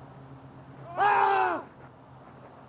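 A man shouts loudly nearby.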